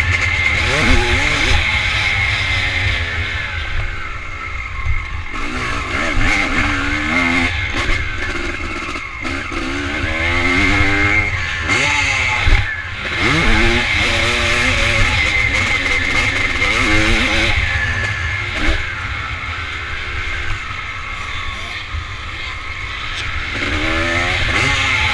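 A dirt bike engine revs hard, its pitch repeatedly rising and falling.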